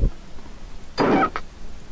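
A heavy blade swishes through the air with a sharp whoosh.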